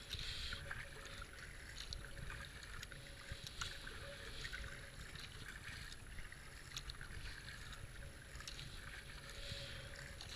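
Water swishes along the hull of a moving kayak.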